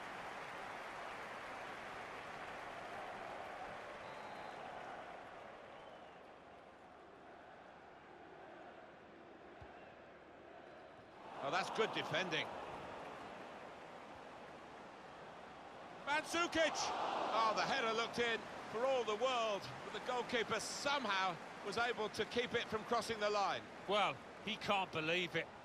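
A stadium crowd murmurs and roars in the distance.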